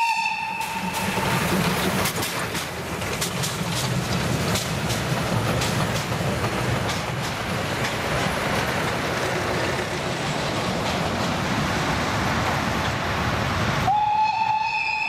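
A steam train chugs and clatters along the tracks.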